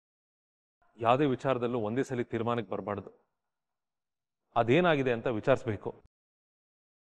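A man speaks earnestly, close by.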